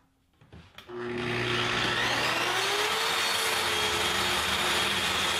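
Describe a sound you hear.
A circular saw whines steadily as it cuts through wood.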